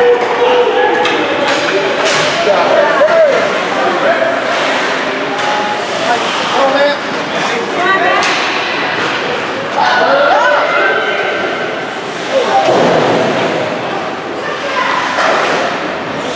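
Spectators shout and cheer in a large echoing arena.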